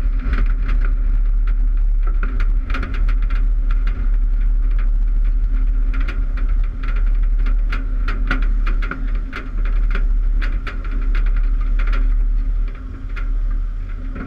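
Dirt and pebbles clatter against the car's body.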